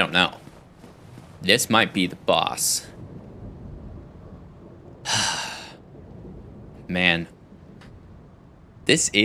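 A young man talks with animation in short bursts, close to a microphone.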